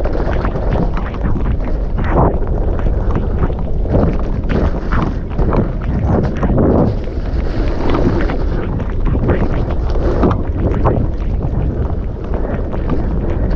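Footsteps squelch quickly through mud.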